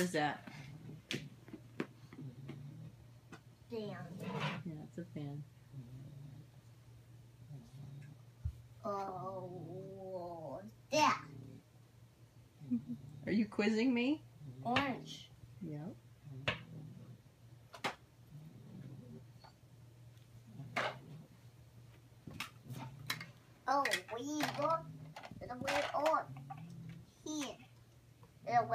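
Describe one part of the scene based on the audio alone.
A small boy talks and names letters aloud nearby.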